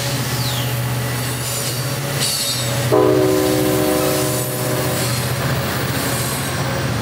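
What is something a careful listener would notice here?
A train rolls past close by with a loud, rumbling clatter.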